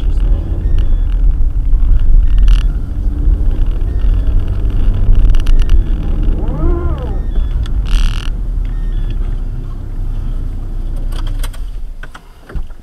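A car engine rumbles as the car drives slowly over snow.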